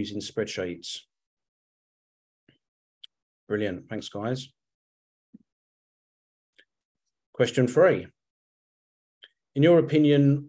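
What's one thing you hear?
A man speaks calmly through an online call, in short phrases with pauses.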